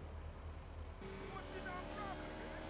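Music plays from a motorcycle radio.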